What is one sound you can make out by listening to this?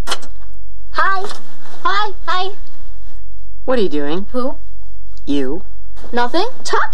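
A woman speaks expressively close by.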